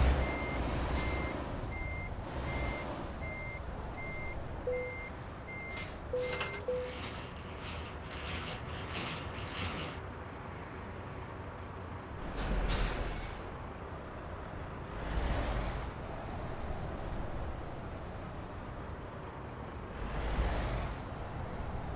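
A truck's diesel engine idles with a low, steady rumble.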